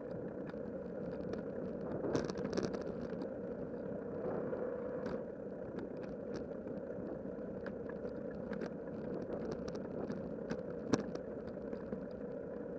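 Bicycle tyres rumble steadily over a rough paved path.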